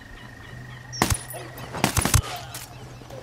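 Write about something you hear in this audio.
A rifle fires a few sharp shots nearby.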